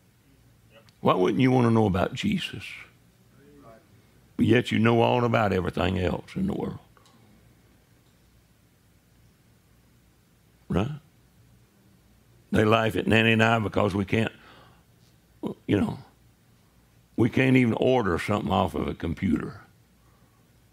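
An older man preaches forcefully into a microphone, in bursts with pauses.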